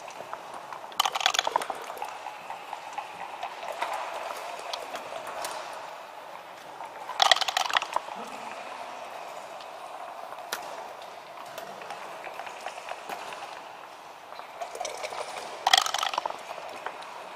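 Dice rattle and tumble across a wooden board.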